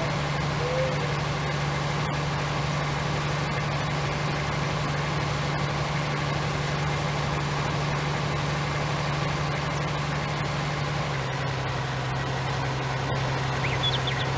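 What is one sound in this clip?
A large harvester engine drones steadily, with a slight drop in pitch near the end.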